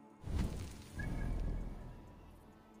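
A soft whoosh sounds as a game map opens.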